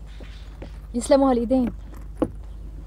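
A man speaks briefly outdoors.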